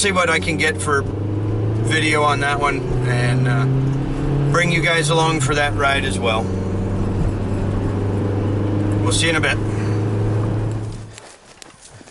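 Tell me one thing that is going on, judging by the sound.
A vehicle engine hums steadily at idle.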